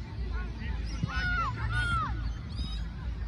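Children shout to each other across a field.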